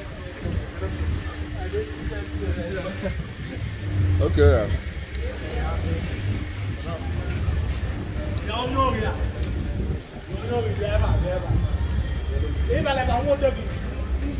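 Men talk nearby on a busy street.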